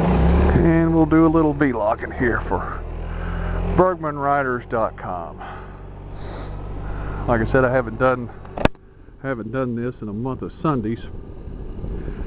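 Wind rushes past as the motorcycle rides along.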